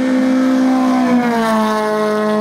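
A racing car engine drops in pitch as the car passes close by.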